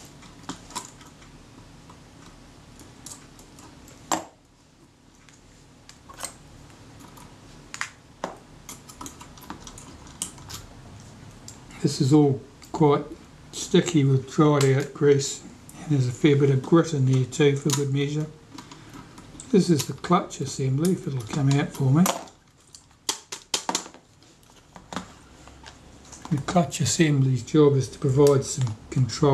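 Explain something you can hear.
Small metal tools click and scrape against metal parts.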